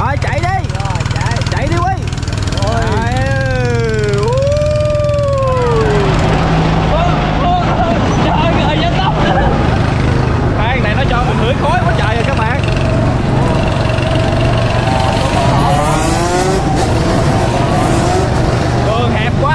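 Small kart engines hum and rumble steadily.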